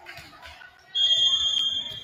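A referee blows a short, shrill whistle.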